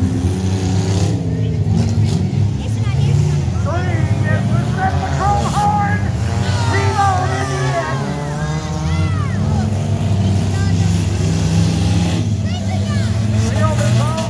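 Car engines roar and rev loudly outdoors.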